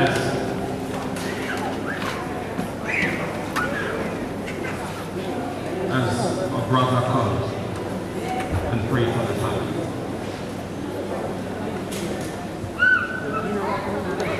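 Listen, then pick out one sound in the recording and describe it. A crowd of people murmurs and talks in a large echoing hall.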